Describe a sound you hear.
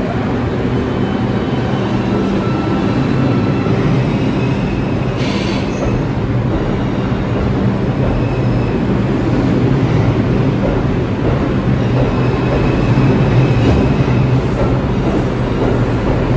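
Train wheels squeal against the rails.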